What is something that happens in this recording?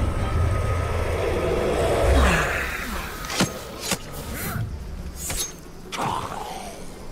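Blades strike and stab with sharp, meaty hits.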